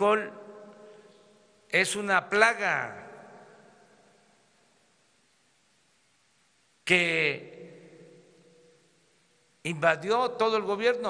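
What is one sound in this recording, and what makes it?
An elderly man speaks slowly into a microphone, in short bursts that echo and die away over a public address system.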